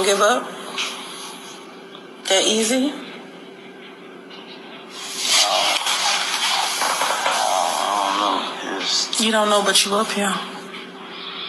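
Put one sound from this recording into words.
A young woman speaks close to the microphone in short bursts.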